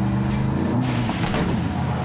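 Tyres skid and crunch over dirt.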